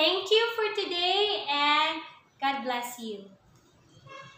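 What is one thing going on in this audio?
A young woman speaks brightly and with animation close to a microphone.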